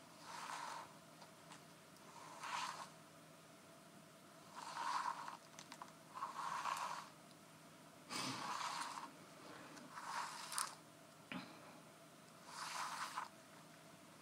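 A woman whispers softly, very close to the microphone.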